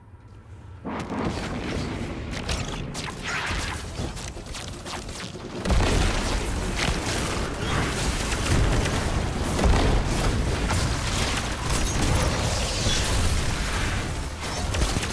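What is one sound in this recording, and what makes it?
Gunfire and energy blasts crackle and boom in a video game.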